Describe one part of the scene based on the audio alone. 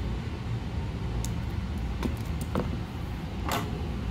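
Wire cutters snip with a sharp click.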